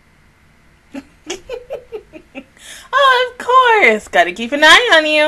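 A young woman laughs loudly and excitedly into a close microphone.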